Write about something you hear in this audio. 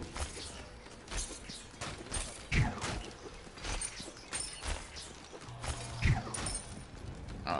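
Game combat effects clash and thud in quick bursts.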